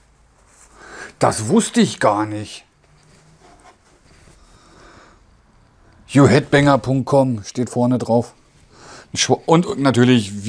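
Fabric rustles as a shirt is unfolded.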